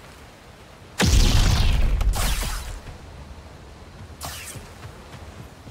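Lightsabers hum and swoosh through the air.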